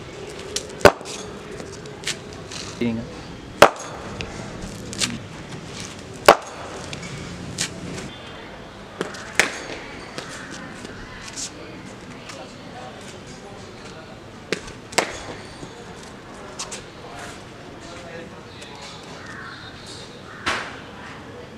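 A cricket bat strikes a ball with sharp knocks.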